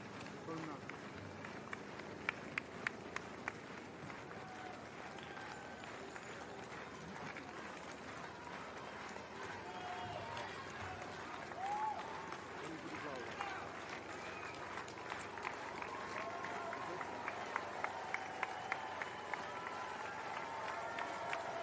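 Running shoes patter on asphalt.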